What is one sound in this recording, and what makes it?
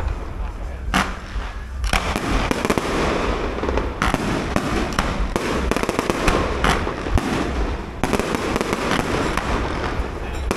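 Fountain fireworks hiss and fizz in a steady rush.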